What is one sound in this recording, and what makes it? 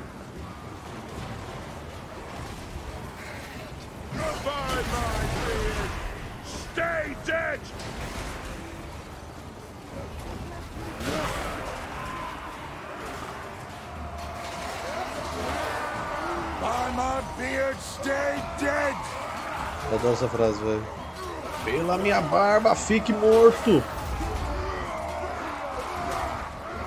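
Battle noise of clashing weapons and a crowd of fighters rumbles throughout.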